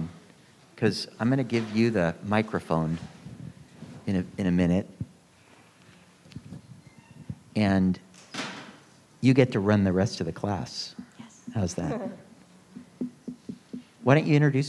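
A woman speaks calmly through a microphone, with pauses.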